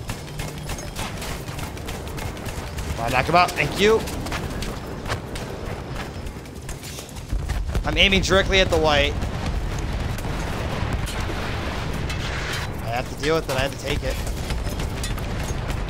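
An anti-aircraft gun fires in rapid bursts.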